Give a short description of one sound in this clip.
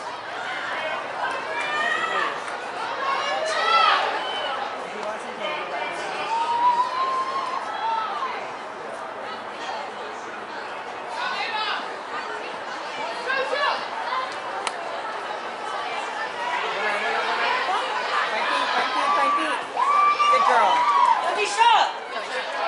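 Young women shout and call to each other outdoors across an open field.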